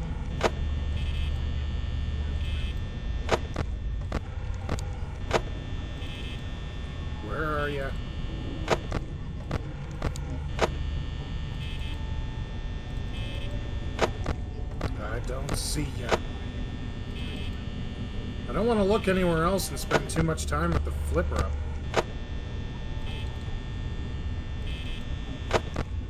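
An electric desk fan whirs with a low hum.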